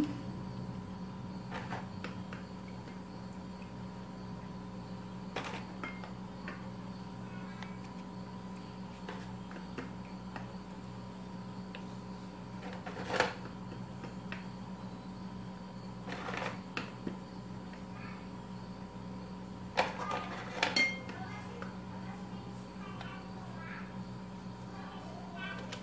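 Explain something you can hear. Biscuits are pressed softly into a soft cream, with faint taps and knocks.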